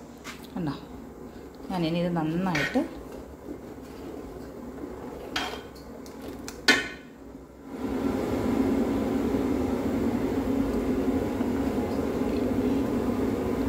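A ladle scrapes and stirs thick batter in a pot.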